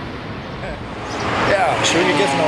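A man laughs cheerfully.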